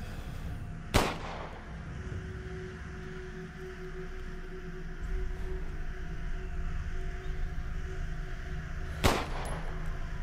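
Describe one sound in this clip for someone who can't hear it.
A pistol fires with a sharp, echoing bang.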